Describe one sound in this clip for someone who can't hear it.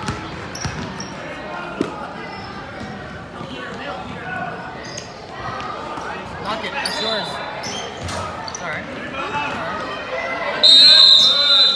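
Children shout and call out across an echoing gym.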